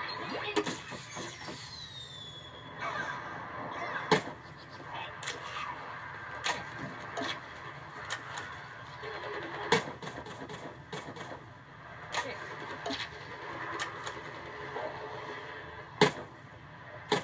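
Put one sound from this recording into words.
Game gunfire and blasts pop and bang repeatedly.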